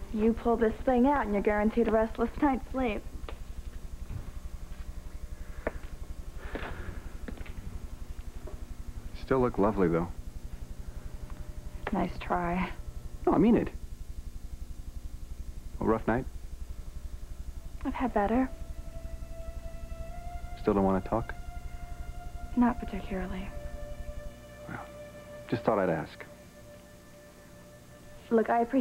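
A young woman speaks softly and calmly nearby.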